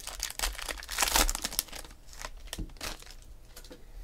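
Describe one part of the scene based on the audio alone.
A plastic wrapper crinkles as it is torn open.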